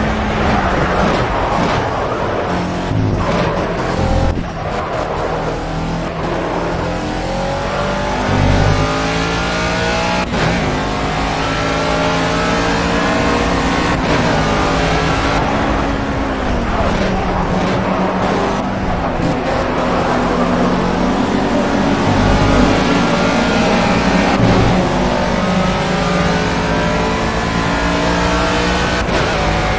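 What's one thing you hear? A racing car engine roars loudly, rising and falling in pitch as the car shifts gears.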